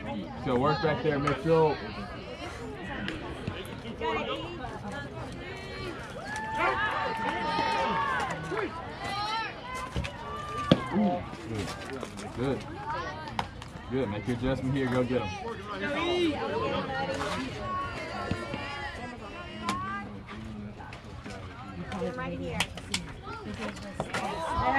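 Young players shout and chatter outdoors.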